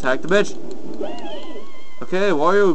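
A short electronic jingle chimes from a video game.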